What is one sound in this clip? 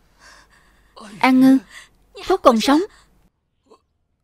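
A man speaks in a hoarse, pleading voice, close by.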